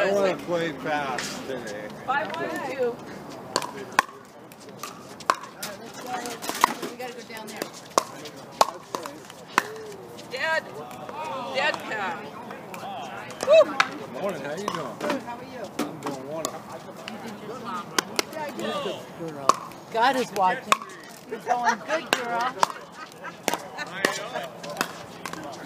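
Pickleball paddles hit a plastic ball with sharp pops outdoors.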